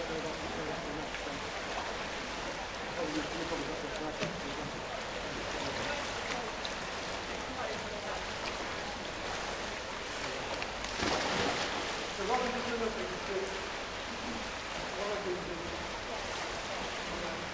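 Swimmers splash through the water in a large echoing hall.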